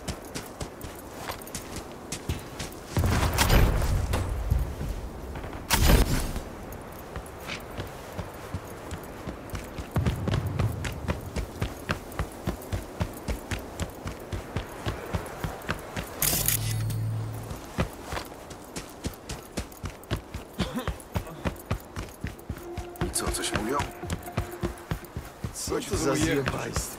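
Quick footsteps tap steadily on hard ground.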